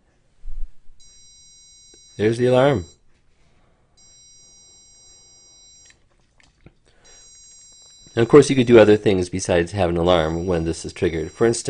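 A small electronic buzzer sounds a steady, high-pitched tone in bursts.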